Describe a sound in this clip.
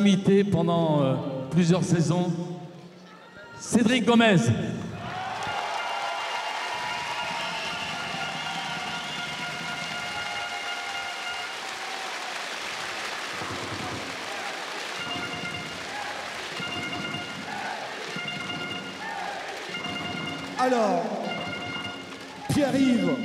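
An older man speaks with animation through a microphone over loudspeakers in a large echoing hall.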